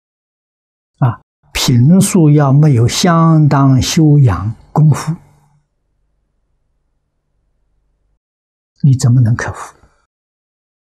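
An elderly man speaks calmly and close into a microphone, in short phrases with pauses.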